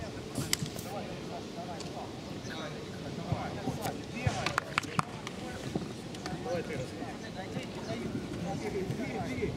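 Young men call out to each other outdoors.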